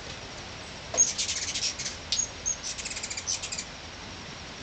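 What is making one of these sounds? A hummingbird chitters at a feeder.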